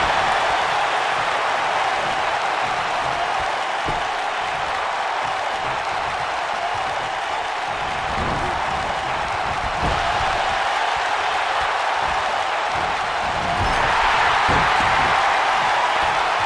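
A large crowd roars steadily, swelling louder near the end.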